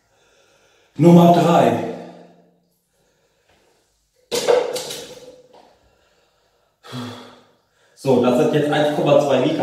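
A young man talks loudly and with animation, close by.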